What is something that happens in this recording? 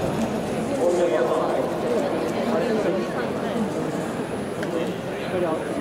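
Several people chatter at a distance in a large open space.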